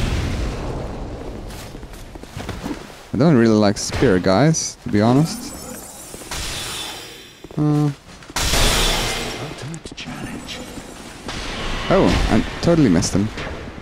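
A sword swings and strikes.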